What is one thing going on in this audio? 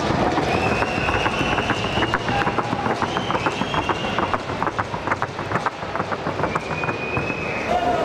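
Hooves clatter quickly on a dirt floor.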